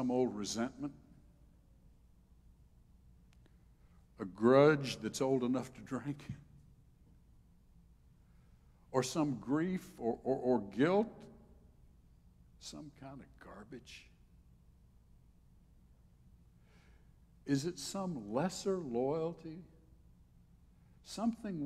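An elderly man speaks calmly and with pauses into a microphone.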